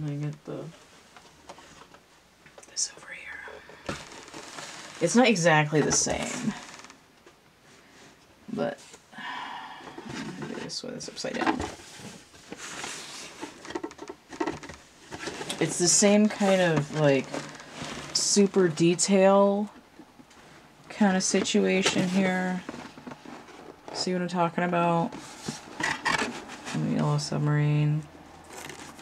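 A small cardboard box taps and slides on a wooden table.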